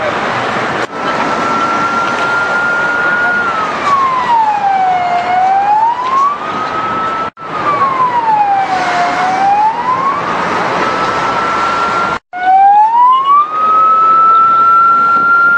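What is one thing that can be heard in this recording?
A fire engine siren wails, rising and falling.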